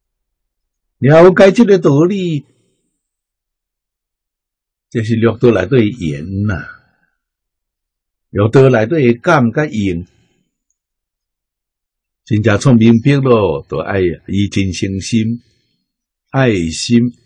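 An elderly man speaks calmly into a clip-on microphone, in short phrases with pauses.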